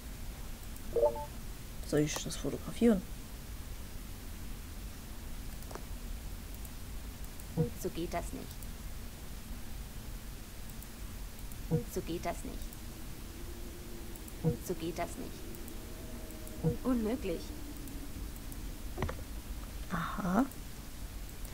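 Short game sound effects chime and click now and then.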